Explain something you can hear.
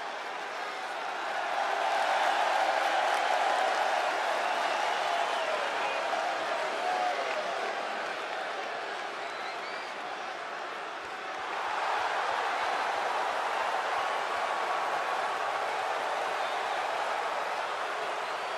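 A large arena crowd cheers and roars steadily.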